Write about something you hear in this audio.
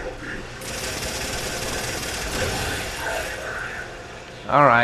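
An energy gun fires rapid, crackling bolts.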